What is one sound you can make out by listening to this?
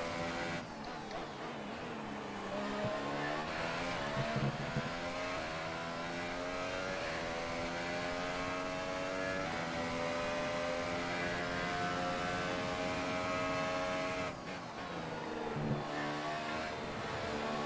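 A racing car engine whines loudly, rising in pitch and dropping with each gear change.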